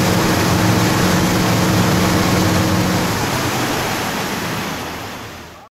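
Water splashes and rushes loudly beneath a towed inflatable.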